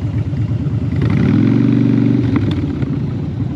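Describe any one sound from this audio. A motorcycle engine revs up briefly.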